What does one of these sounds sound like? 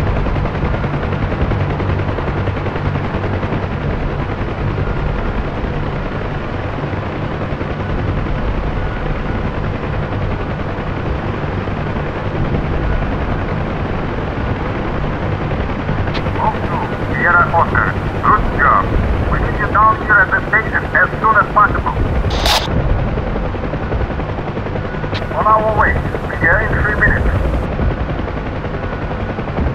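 A helicopter engine and rotor drone steadily from inside the cabin.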